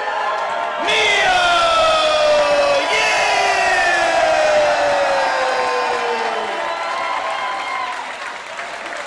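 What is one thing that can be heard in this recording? A large crowd cheers and whistles in an echoing hall.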